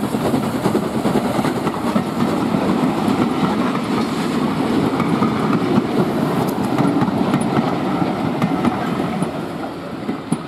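Railway carriages rattle and clatter over the tracks.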